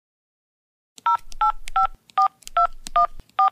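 A phone beeps as numbers are dialled.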